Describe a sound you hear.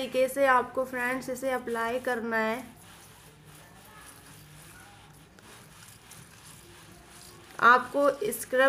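Hands rub cream onto skin with a soft swishing.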